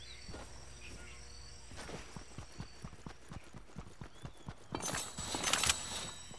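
Footsteps patter quickly over dirt and grass.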